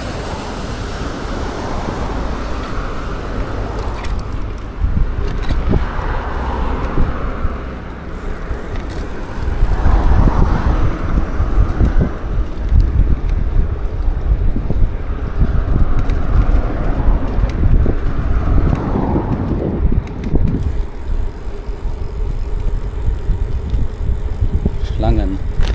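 Bicycle tyres roll and rattle over paving stones.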